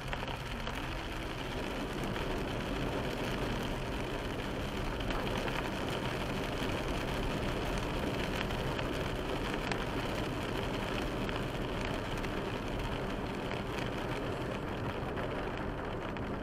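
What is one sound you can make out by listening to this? A car's engine hums steadily inside the cabin.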